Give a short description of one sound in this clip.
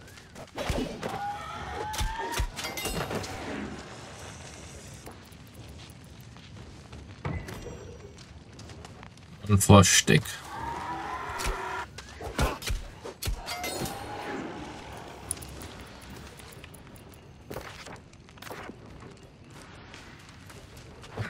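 A fire crackles and burns.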